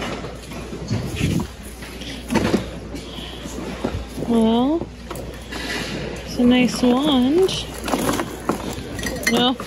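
Fabric and plastic bags rustle as hands rummage through a pile of things.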